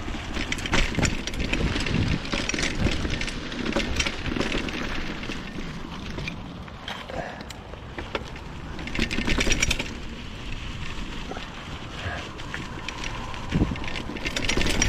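Wind rushes past a moving rider outdoors.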